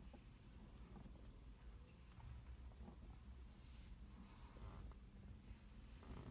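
A hand brushes and taps against a steering wheel.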